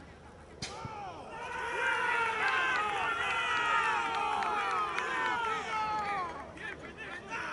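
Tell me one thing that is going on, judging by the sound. Young men cheer and shout loudly in celebration.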